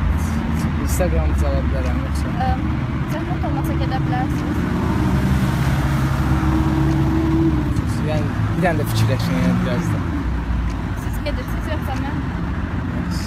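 A young man talks nearby in a lively voice.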